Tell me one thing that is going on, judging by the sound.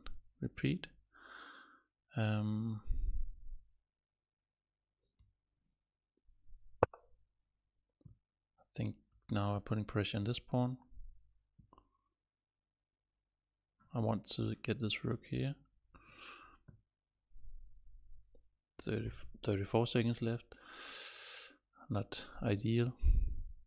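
A man talks with animation into a close microphone, pausing often.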